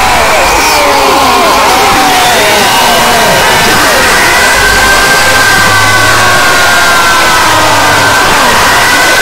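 Harsh, distorted fighting game sound effects crash and blare loudly.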